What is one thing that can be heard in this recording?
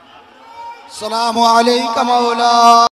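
A young man chants loudly through a microphone in a mournful, wavering voice.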